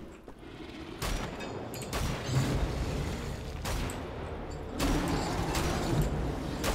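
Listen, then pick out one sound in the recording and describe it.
Guns fire rapidly with heavy blasts.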